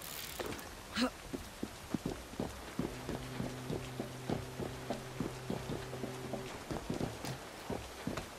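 Hands and feet clatter on metal while climbing a wall.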